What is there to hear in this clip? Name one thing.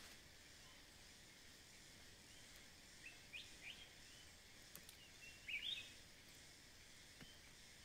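Leafy plants rustle and snap softly as greens are picked by hand.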